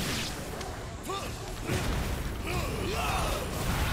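Fire bursts with a roar.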